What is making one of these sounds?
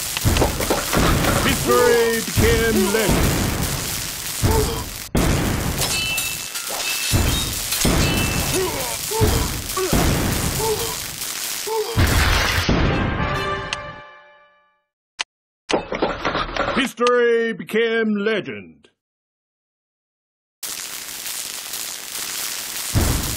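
Laser beams zap repeatedly in a game.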